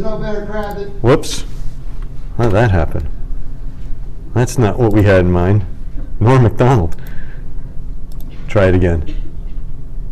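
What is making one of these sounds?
A man speaks to an audience in a large room, pausing between phrases.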